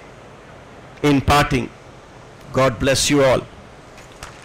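An elderly man gives a formal speech through a microphone and loudspeakers.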